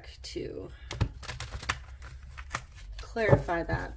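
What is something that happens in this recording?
Playing cards rustle softly in a hand.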